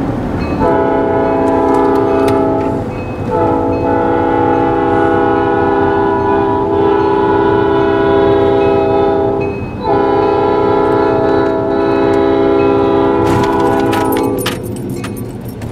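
A diesel locomotive engine rumbles close by.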